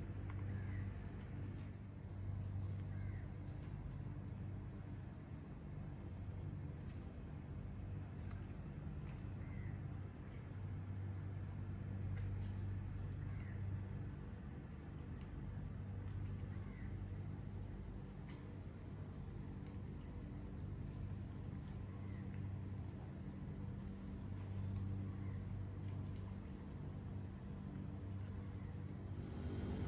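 Calm sea water laps gently.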